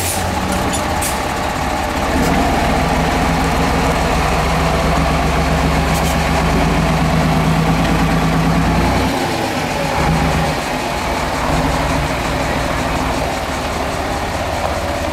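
A heavy truck engine rumbles loudly, labouring as it climbs over rocks.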